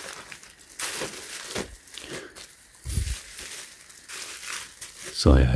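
A plastic bag crinkles and rustles as hands handle it.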